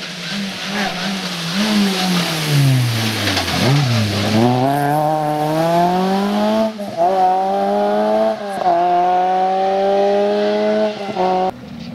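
A rally car engine roars past close by, revving hard and shifting gears as it speeds away.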